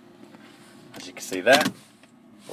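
A gear lever clicks as it is shifted.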